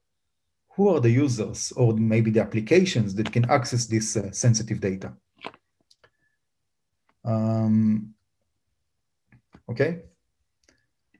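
A man speaks calmly through a microphone on an online call, pausing between phrases.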